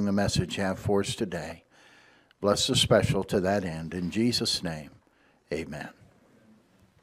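A man speaks with animation into a microphone in an echoing hall.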